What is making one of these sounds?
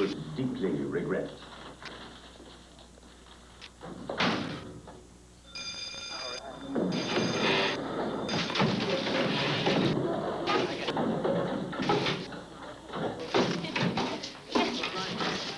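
An elderly man speaks calmly to a class.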